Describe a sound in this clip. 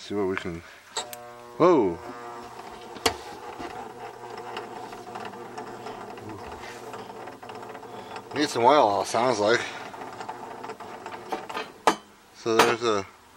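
A projector fan hums steadily.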